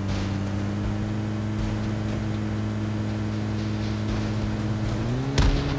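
A jeep engine hums steadily at speed, then rises in pitch.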